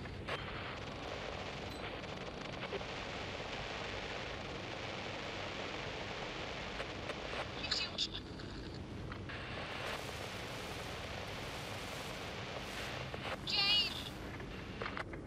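A handheld radio crackles with steady static.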